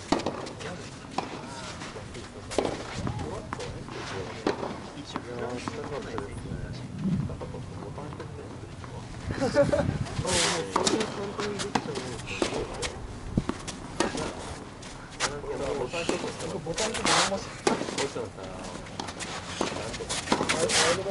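Sneakers shuffle and scuff on the court surface.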